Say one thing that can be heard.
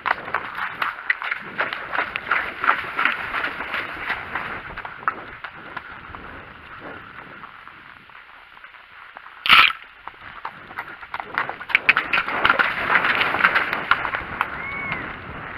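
A horse splashes at a trot through shallow water.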